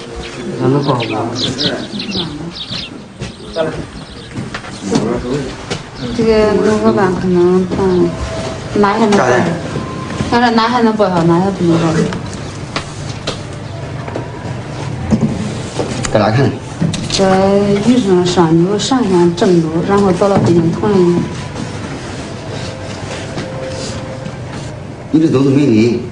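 A middle-aged woman speaks close by in a pleading, emotional voice.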